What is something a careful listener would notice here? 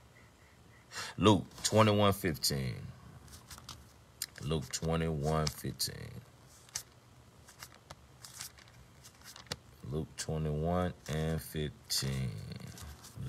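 A man speaks calmly and close to a phone microphone, with pauses.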